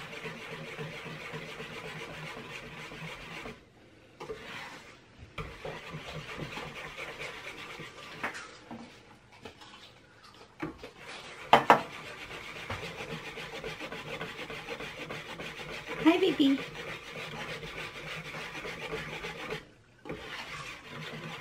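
A metal spoon scrapes and clinks against a metal can.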